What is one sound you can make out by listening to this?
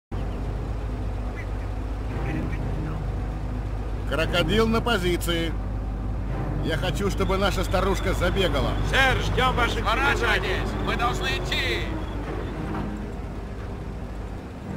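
Tank engines rumble low and steadily.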